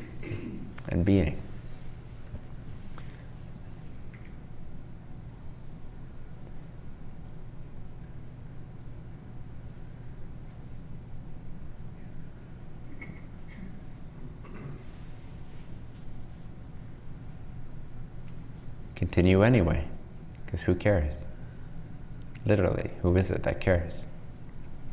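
A young man speaks calmly in short bursts, close to a microphone.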